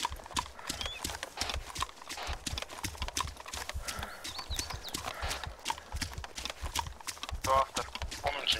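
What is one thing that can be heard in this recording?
Footsteps swish quickly through tall grass.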